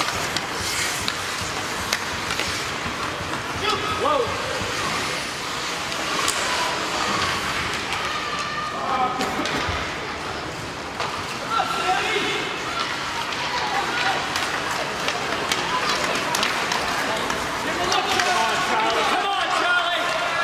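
Hockey sticks clack against a puck on ice.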